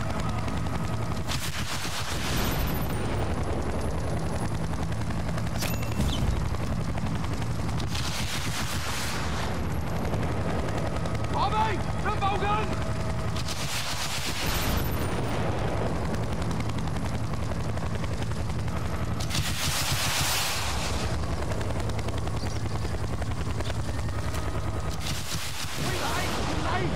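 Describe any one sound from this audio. Helicopter rotor blades thump steadily and loudly.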